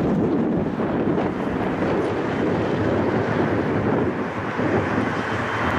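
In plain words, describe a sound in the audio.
Jet engines of an airliner roar steadily nearby.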